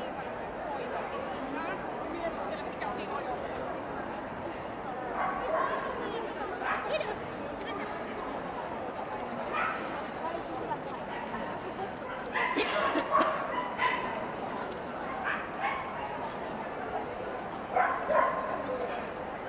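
A crowd murmurs throughout in a large echoing hall.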